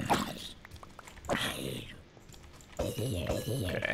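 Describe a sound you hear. A sword strikes a zombie with dull thuds.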